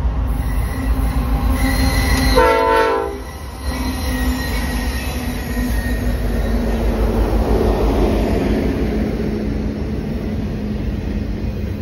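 A freight train's diesel engines rumble loudly close by.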